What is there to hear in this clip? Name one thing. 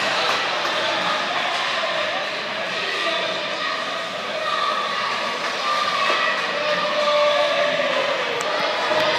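Ice skates scrape across the ice in a large echoing rink.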